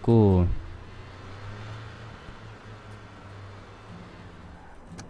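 A car engine hums steadily as a car drives.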